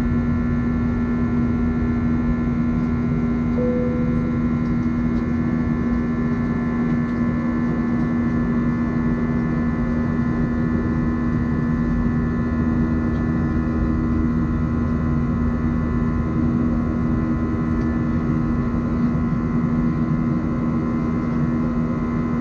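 A jet engine roars steadily with a low, constant hum from inside a plane's cabin.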